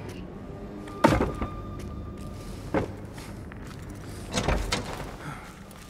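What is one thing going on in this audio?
A heavy wooden gate thuds and clatters open.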